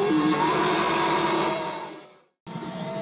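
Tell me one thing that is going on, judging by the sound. A killer whale squeals loudly.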